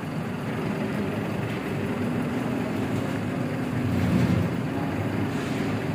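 A tow truck drags a vehicle along slowly.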